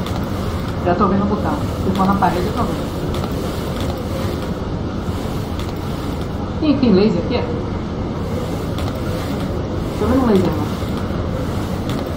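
A fan whirs steadily overhead.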